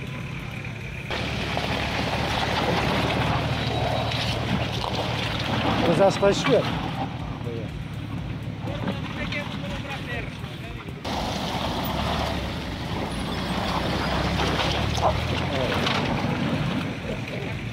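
Tyres churn and slip through thick mud.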